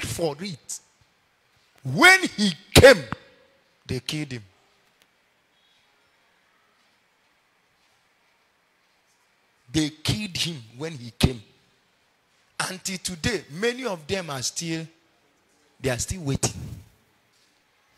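A man preaches with animation into a microphone in a large echoing hall.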